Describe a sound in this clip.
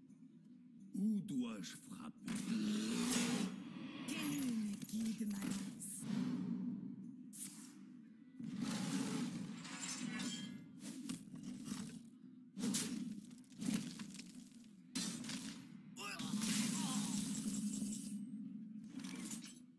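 Game sound effects whoosh and clash as cards are played.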